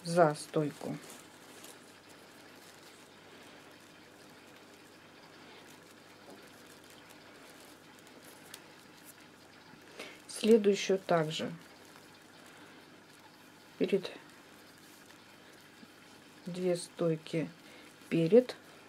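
Stiff paper strands rustle and creak softly as they are woven into a basket.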